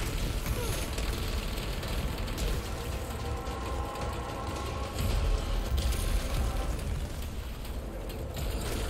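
Energy weapons fire in rapid bursts with crackling sparks.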